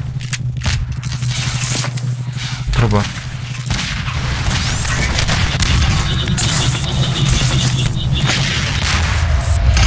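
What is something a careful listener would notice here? An electric beam crackles and buzzes.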